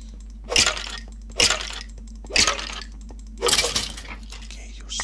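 Sharp hit sounds from a video game ring out several times.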